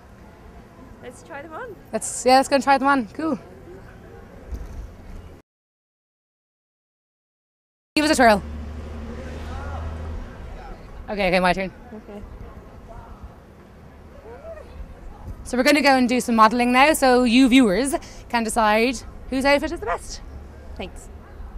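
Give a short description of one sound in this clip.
A young woman speaks into a microphone, asking questions with animation.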